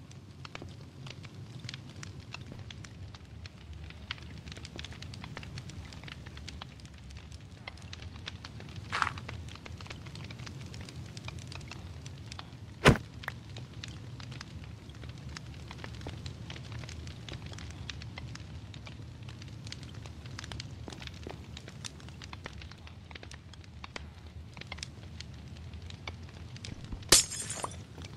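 A campfire crackles softly.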